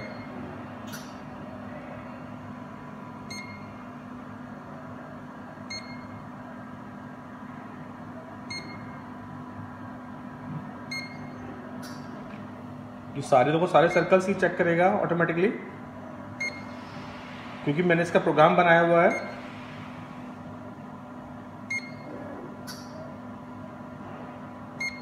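A measuring probe softly clicks each time it touches a metal part.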